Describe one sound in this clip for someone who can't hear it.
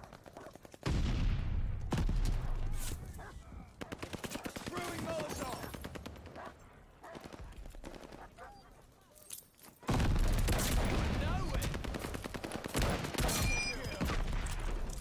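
Rifle shots ring out in loud bursts.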